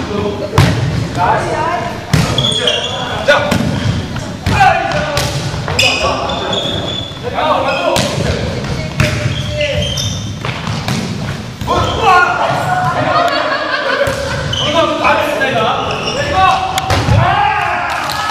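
A volleyball thumps off players' hands with a sharp slap.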